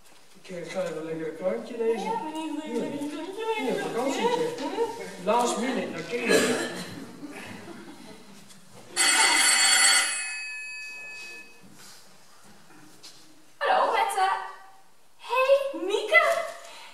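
A young woman speaks with animation on a stage, heard from a distance in a large hall.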